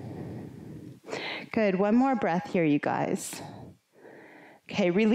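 A woman speaks calmly and clearly.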